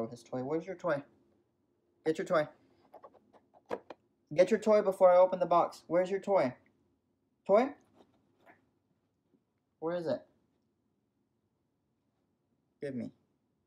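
A young man talks with animation, close by, in short bursts with pauses.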